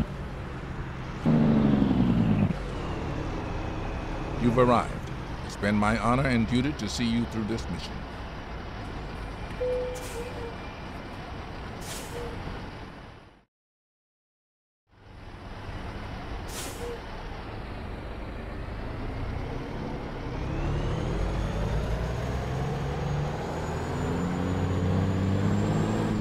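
A truck engine rumbles steadily and revs up as the truck pulls away.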